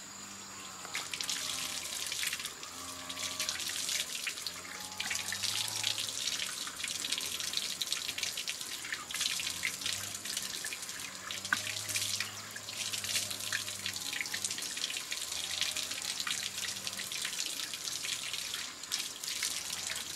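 Water runs from a tap and splashes onto a concrete floor.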